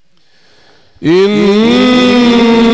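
A man chants loudly in a long, melodic voice through a microphone and loudspeakers.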